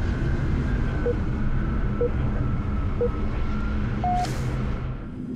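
A short electronic beep sounds once a second, counting down, with the last beep higher.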